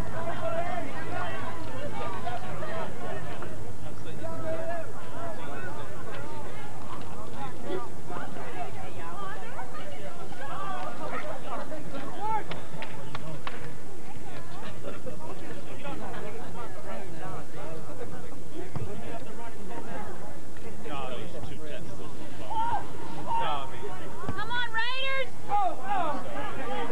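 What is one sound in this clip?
A crowd of men and women chatters and calls out outdoors.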